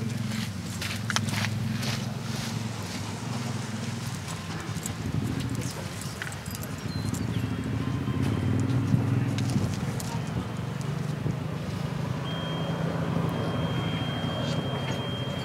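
A horse's hooves thud softly on sand as it trots.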